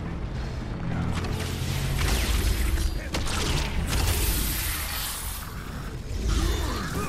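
Energy bolts zap and crackle.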